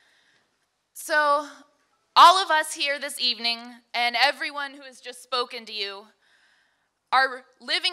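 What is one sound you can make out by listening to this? A young woman speaks calmly into a microphone through loudspeakers.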